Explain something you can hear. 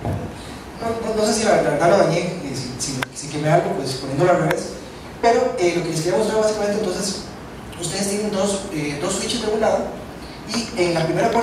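A man speaks with animation through a microphone and loudspeakers in a large room.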